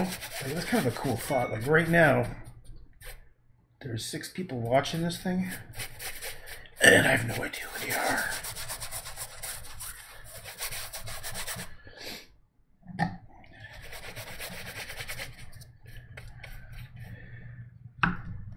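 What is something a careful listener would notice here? A paintbrush scrubs softly on paper.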